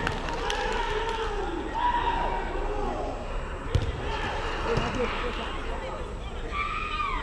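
Young men call out and talk in an echoing space.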